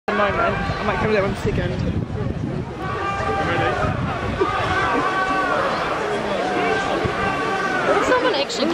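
A large outdoor crowd cheers and shouts from a distance.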